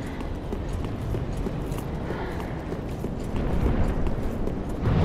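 Armoured footsteps run quickly over stone steps.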